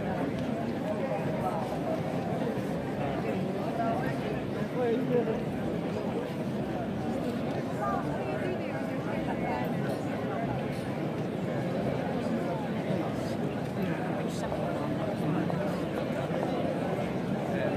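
A large crowd of men, women and children chatters all around outdoors.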